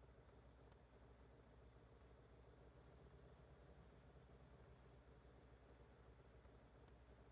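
A tank engine idles with a low, steady rumble.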